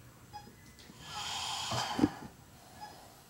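A breathing bag hisses as it is squeezed.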